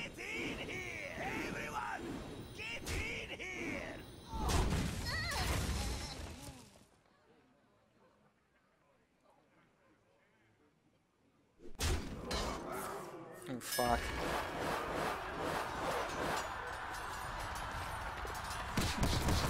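Game sound effects chime and crash with magical whooshes.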